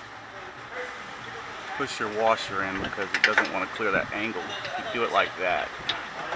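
Metal parts clink softly as a bolt is fitted by hand.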